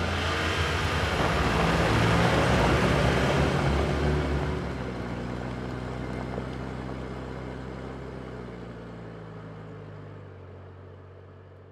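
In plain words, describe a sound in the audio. A car engine rumbles as a car drives away and fades into the distance.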